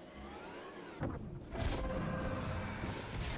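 Flames whoosh and roar in a burst.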